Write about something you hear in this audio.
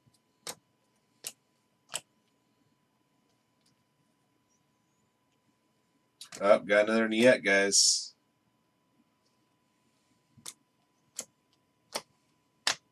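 Trading cards click and snap as they are flipped through.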